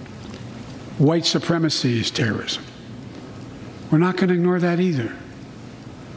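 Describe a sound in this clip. An elderly man speaks slowly and firmly into a microphone in a large hall.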